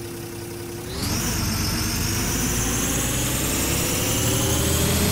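A bus engine revs up, rising in pitch as the bus pulls away.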